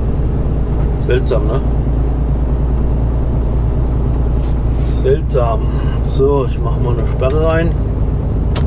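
A truck's diesel engine hums low and steady while driving.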